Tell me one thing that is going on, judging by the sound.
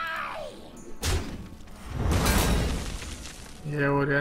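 Heavy magical impacts crash and rumble.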